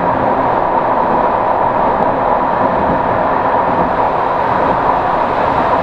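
Wheels clatter over the track joints.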